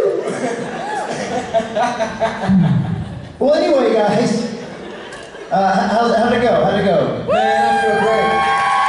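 A second man sings into a microphone.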